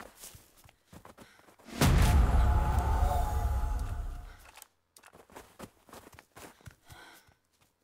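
Footsteps crunch through snow and dry grass.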